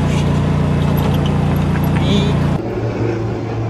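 A small vehicle's motor hums steadily while riding.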